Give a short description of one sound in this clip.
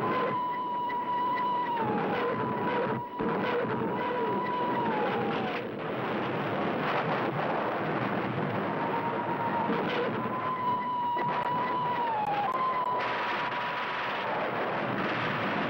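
A plane's engine roars steadily as the plane dives.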